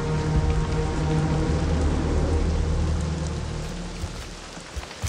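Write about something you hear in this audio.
Rain pours down steadily outdoors.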